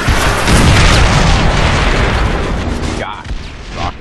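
A loud explosion booms.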